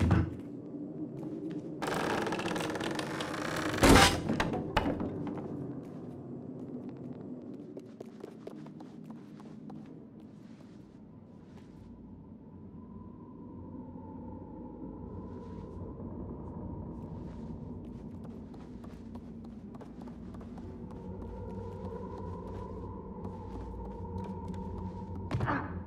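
Small footsteps creak on wooden floorboards.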